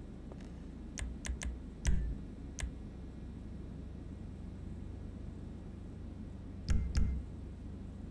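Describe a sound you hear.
Short electronic beeps click.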